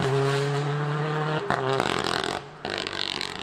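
A rally car engine roars loudly at high revs as the car speeds away.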